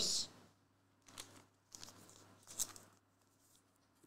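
A card in a plastic sleeve rustles in someone's hands.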